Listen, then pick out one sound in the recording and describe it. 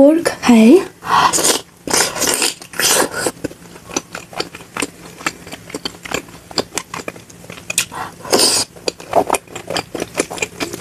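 A young woman chews and smacks food loudly close to a microphone.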